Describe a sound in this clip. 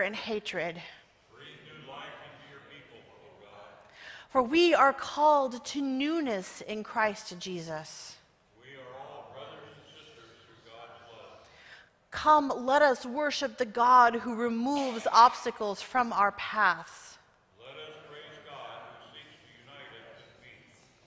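A man reads aloud through a microphone.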